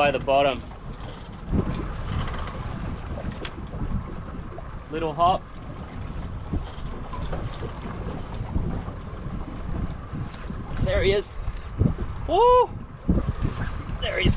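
A man speaks calmly and close by, outdoors in wind.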